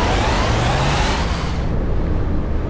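A bus engine revs up, rising quickly in pitch.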